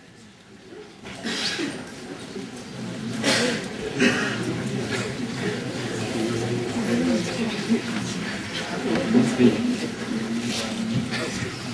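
An audience cheers and shouts loudly.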